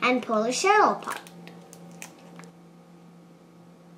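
An eggshell cracks and breaks apart.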